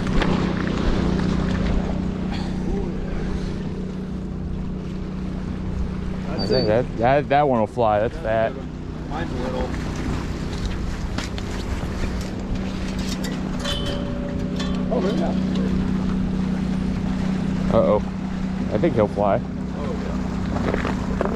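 Small waves lap against rocks.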